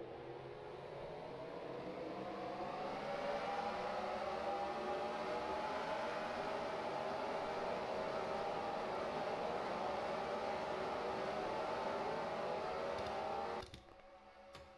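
A pack of race car engines roars, rising in pitch as they speed up.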